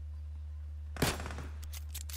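A bolt-action rifle fires a single shot.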